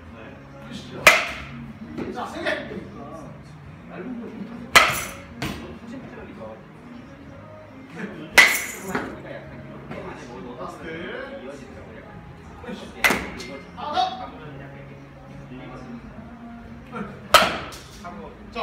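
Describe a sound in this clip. A baseball bat swishes sharply through the air, again and again.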